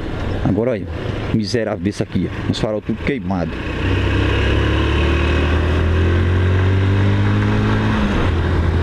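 A motorcycle engine hums and rises steadily in pitch as the bike speeds up.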